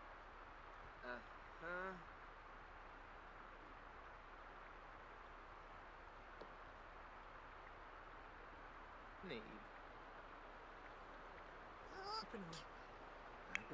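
A young man speaks briefly and quietly into a microphone.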